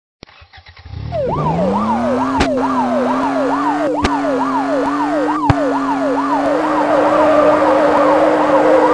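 A car engine revs up and hums steadily as the car accelerates.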